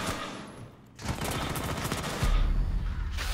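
A rifle fires a rapid burst of gunshots nearby.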